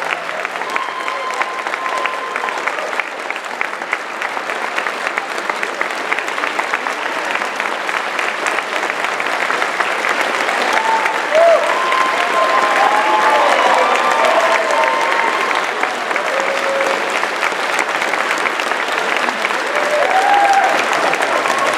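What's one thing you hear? Audience members whistle shrilly in cheers.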